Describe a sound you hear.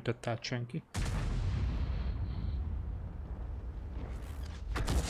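A tank cannon fires with a deep boom that rumbles away.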